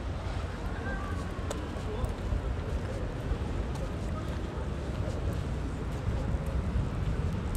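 River water laps gently against a stone embankment.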